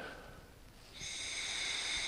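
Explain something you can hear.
A man draws on a pipe with a soft hiss.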